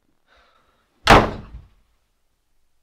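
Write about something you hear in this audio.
A young man shouts.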